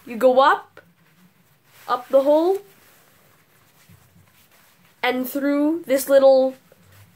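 A boy talks close up, explaining with animation.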